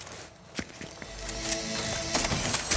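A chest opens with a shimmering chime.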